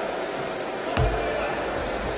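A basketball bounces once on a wooden floor.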